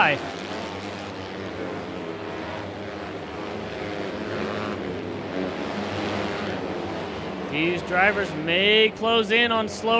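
Racing car engines roar loudly and steadily.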